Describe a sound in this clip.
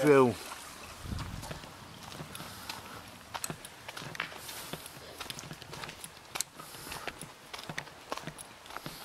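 Footsteps crunch slowly on a gravel path.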